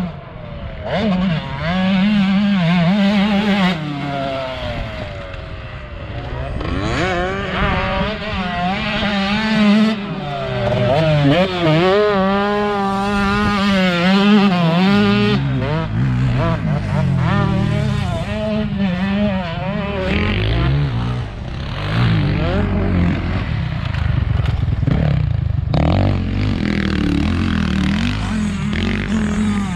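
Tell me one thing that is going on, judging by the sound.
A dirt bike engine revs up and down close by, rising and falling in pitch.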